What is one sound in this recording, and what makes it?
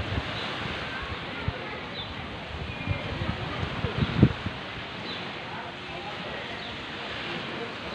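Small waves lap gently on a shore.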